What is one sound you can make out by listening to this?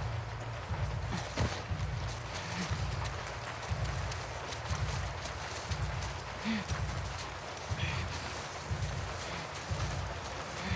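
Soft footsteps pad steadily on damp ground.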